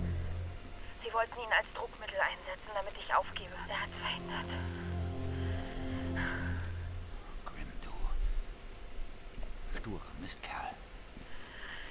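A middle-aged man speaks gravely in a low voice.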